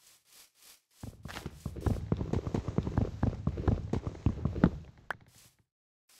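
Rapid blocky knocks of wood being chopped in a game.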